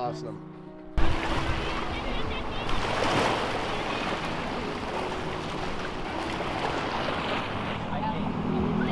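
Small waves lap gently onto a sandy shore.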